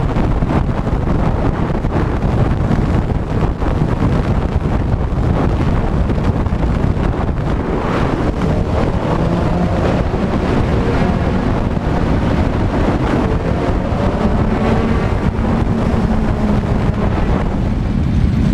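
Wind roars loudly past a helmet at speed.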